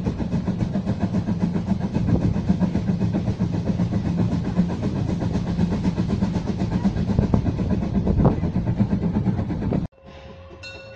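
A train rumbles and clatters loudly along the tracks.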